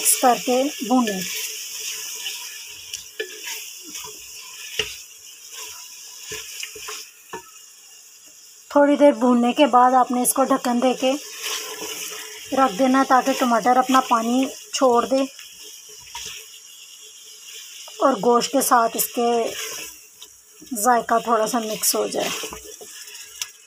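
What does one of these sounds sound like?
A spatula scrapes and stirs food against a metal pot.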